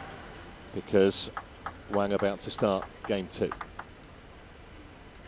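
A ping-pong ball clicks sharply back and forth off paddles and the table.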